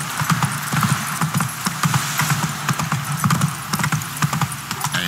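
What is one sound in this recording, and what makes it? Horse hooves clop on wooden planks.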